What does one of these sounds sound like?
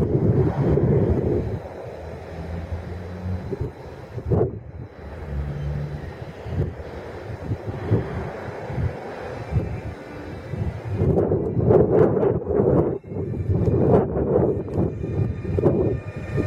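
An electric train rumbles along the track as it approaches.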